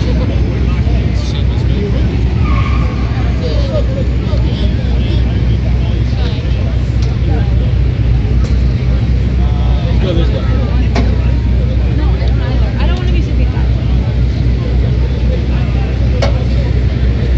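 Traffic rumbles past on a city street.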